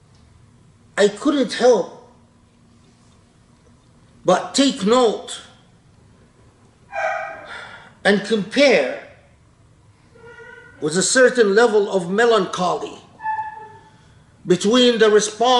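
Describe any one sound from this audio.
An elderly man speaks close by, calmly and with pauses.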